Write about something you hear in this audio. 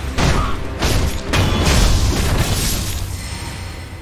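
Steel blades clash and ring loudly.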